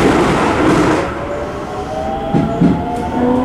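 A train's motors whine rising in pitch.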